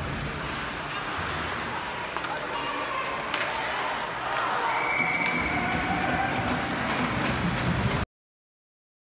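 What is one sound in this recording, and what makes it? Ice skates scrape across the ice in a large echoing arena.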